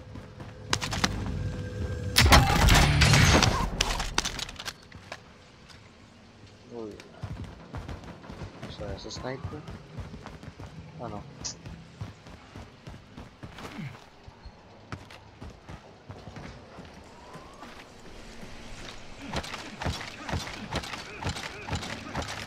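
Footsteps thud on concrete.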